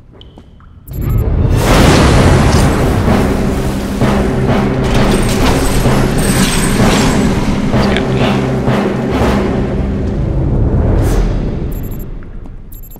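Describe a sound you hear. A thrown blade whooshes through the air and strikes with a crackling burst.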